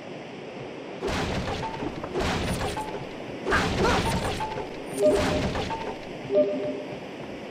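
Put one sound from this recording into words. Wooden objects smash and break apart in quick bursts.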